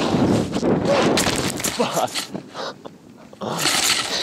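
Snow crunches and sprays as a snowboarder tumbles down a slope.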